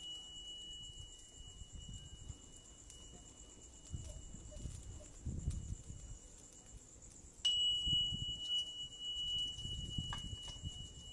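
Flames flutter and roar softly.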